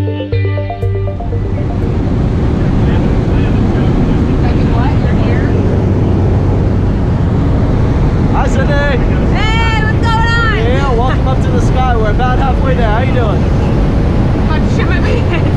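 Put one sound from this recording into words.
A small plane's engine drones loudly and steadily, with wind roaring.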